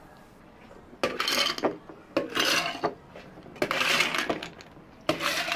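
Ice cubes clatter and rattle into glass jars.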